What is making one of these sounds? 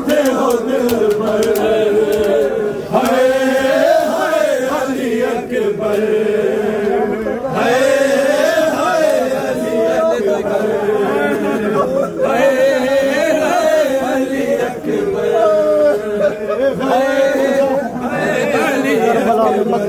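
A crowd of men chants loudly together in a rhythmic lament.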